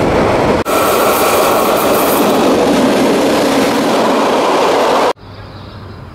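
A train rattles loudly along the tracks in rushing wind.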